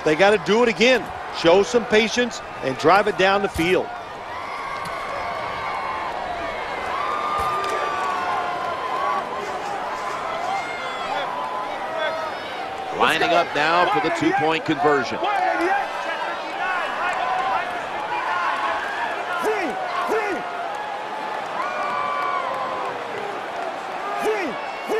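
A large stadium crowd murmurs and cheers steadily.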